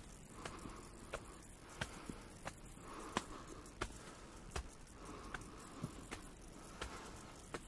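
Footsteps fall steadily on stone steps.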